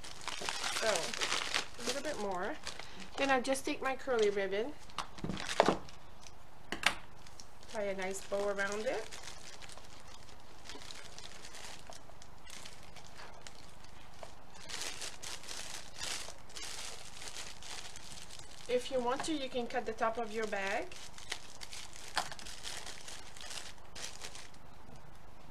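Cellophane crinkles and rustles as hands wrap a gift.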